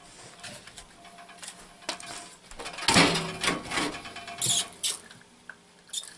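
Firewood logs knock and clatter together.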